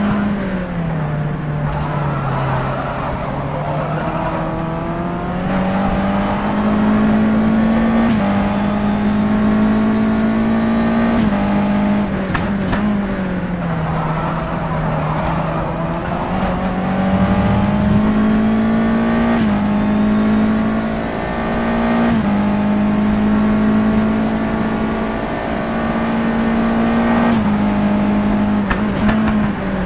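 A racing car engine roars, rising in pitch as it speeds up and dropping sharply at each gear change.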